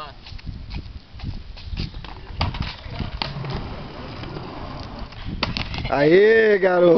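Skateboard wheels roll over rough concrete.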